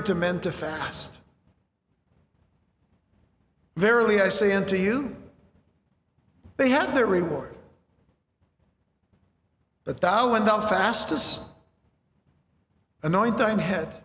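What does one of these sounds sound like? A middle-aged man speaks slowly and calmly into a microphone, with pauses between phrases.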